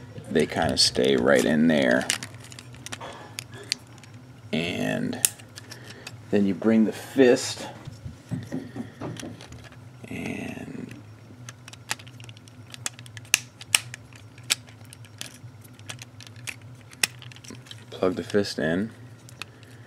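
Plastic toy parts click and snap as they are handled.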